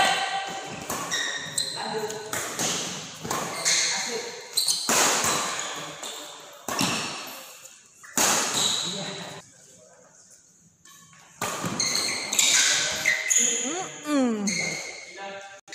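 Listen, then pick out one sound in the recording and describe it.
Sports shoes squeak on a court floor.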